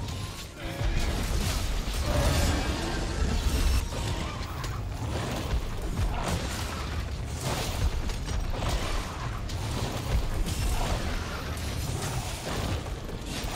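Weapons clash and strike in rapid hits.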